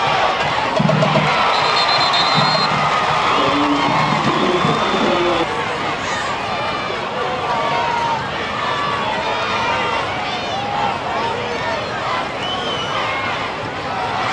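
A crowd of spectators cheers and chatters at a distance outdoors.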